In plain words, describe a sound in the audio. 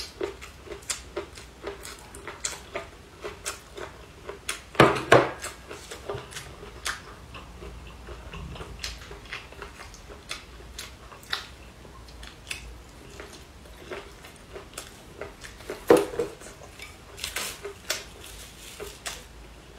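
A woman chews and slurps food loudly close to a microphone.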